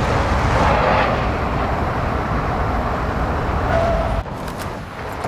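A truck engine roars as the truck drives fast.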